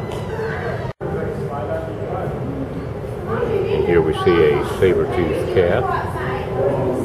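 Adults talk in the distance in a large echoing hall.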